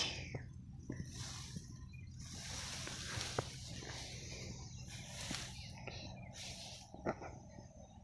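Wheat stalks rustle and brush close by.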